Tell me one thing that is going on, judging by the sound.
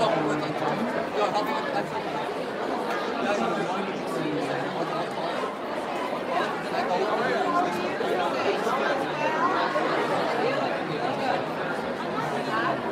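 A large crowd of young people chatters loudly in an echoing hall.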